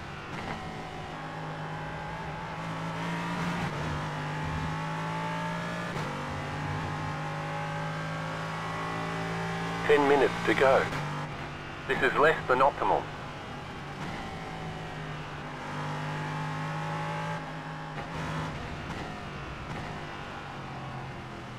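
A racing car engine drones and shifts pitch as it speeds up and slows down.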